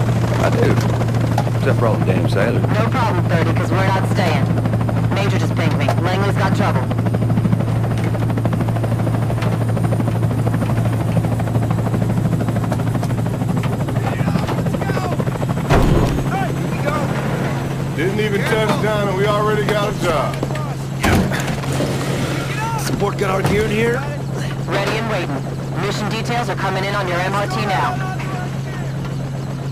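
An aircraft engine hums steadily.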